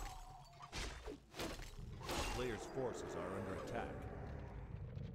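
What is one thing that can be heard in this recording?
Game weapons clash and magic effects crackle in a battle.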